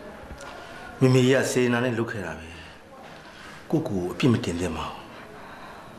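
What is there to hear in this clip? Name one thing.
A middle-aged man speaks softly and gently, close by.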